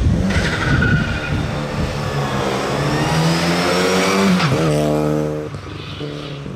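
A car engine revs and accelerates away, its pitch rising through the gears.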